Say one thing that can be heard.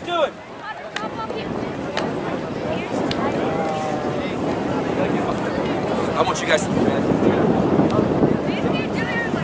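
A crowd of spectators chatters and cheers from a distance.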